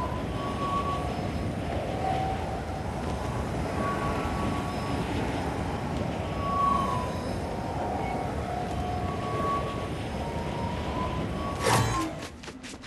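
Wind rushes loudly past a gliding game character.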